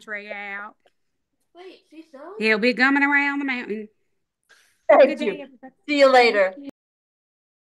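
A middle-aged woman speaks warmly and laughs over an online call.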